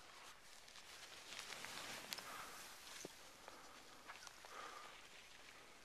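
Skis hiss and swish through snow close by.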